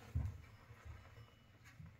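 A fire crackles softly in a stove.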